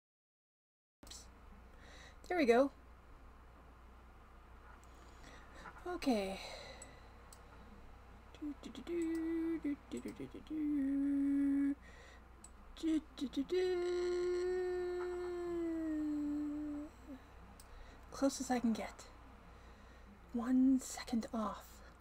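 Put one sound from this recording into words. A woman speaks through a webcam microphone.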